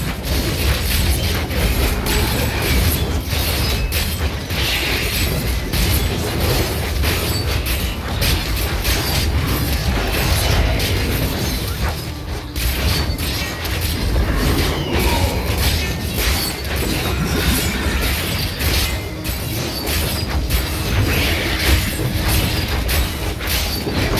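Game combat sounds of blasts and hits clash rapidly and without pause.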